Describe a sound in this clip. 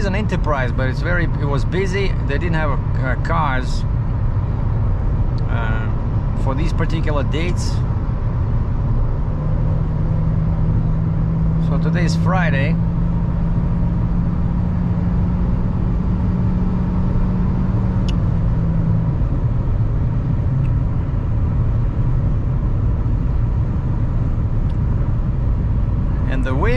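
Road noise rumbles steadily inside a moving car.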